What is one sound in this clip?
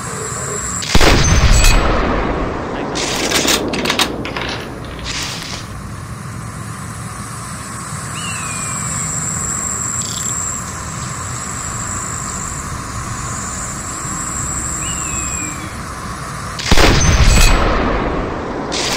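A sniper rifle fires with a loud, booming shot that echoes away.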